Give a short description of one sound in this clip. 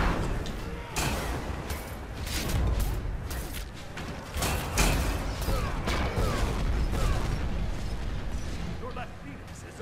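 Game spells crackle and blast in a rapid fight.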